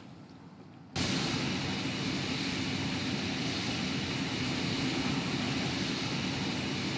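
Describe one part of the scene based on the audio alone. A jet engine roars loudly and steadily close by.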